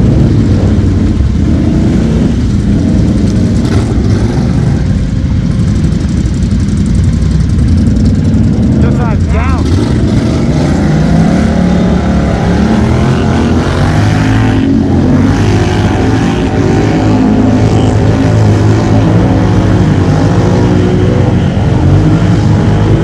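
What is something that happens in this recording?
A quad bike engine rumbles close by.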